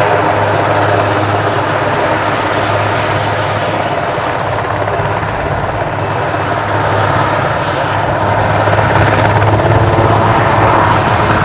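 A helicopter's engine whines and its rotor thumps steadily close by.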